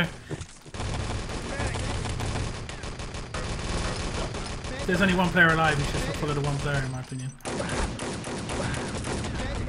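Rapid gunfire bursts rattle close by.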